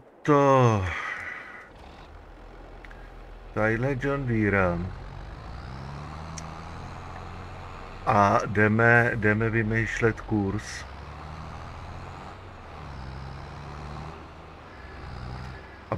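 A tractor engine rumbles steadily and revs as the tractor drives off.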